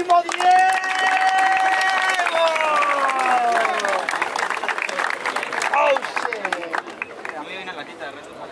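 A crowd of young people cheers and shouts loudly nearby.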